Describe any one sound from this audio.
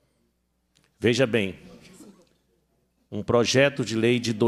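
A middle-aged man speaks calmly into a microphone, heard through a loudspeaker system.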